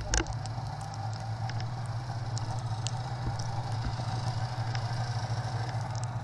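Snow crunches underfoot.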